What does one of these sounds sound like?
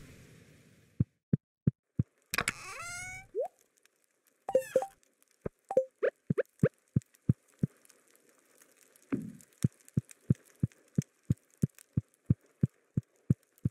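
Footsteps tap steadily across a wooden floor.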